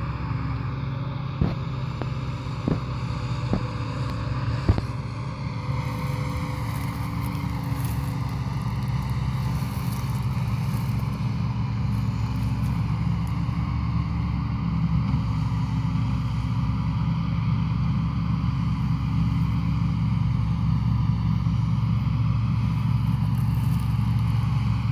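A farm machine's engine drones steadily nearby, outdoors.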